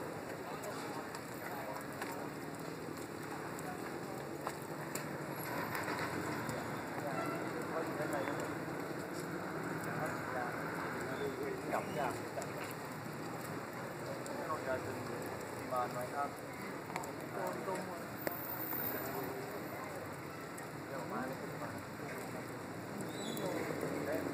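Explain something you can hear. Steam hisses and roars loudly and steadily from a burst pipe outdoors.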